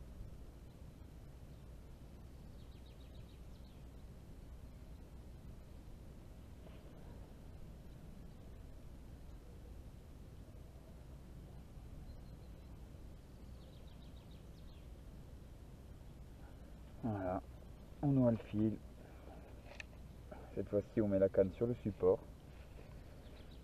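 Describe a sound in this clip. Wind rumbles softly outdoors over open water.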